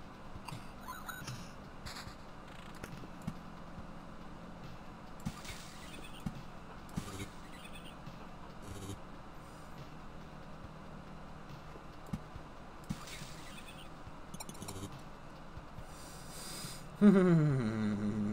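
Short electronic blips sound from a game interface.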